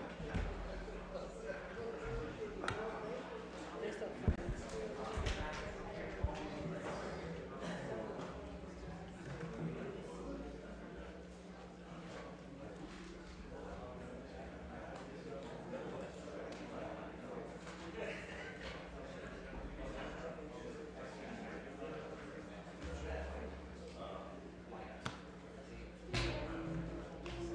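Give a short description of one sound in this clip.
Several people murmur and chat quietly in a large room.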